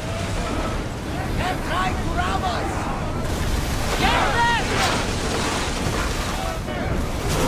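Wind blows hard over open water.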